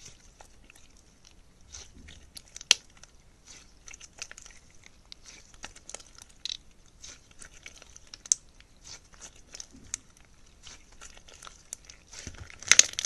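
Sticky slime crackles and pops softly as it is stretched.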